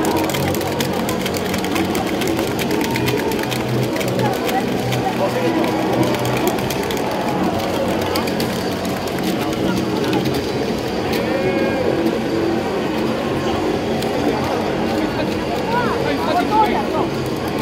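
A large crowd in an open stadium cheers and chants together loudly.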